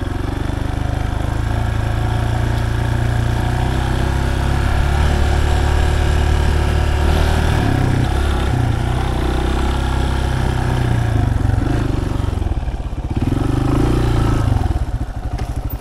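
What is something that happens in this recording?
A motorcycle engine revs and rumbles as the bike rides over rough ground.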